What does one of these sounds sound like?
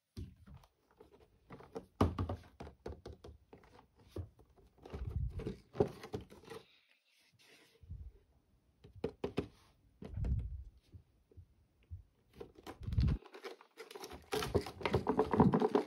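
Hands tap and handle plastic toy packaging, which crinkles and clicks.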